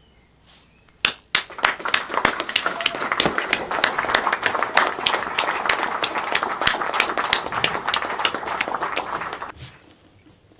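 A young man claps his hands rapidly and steadily.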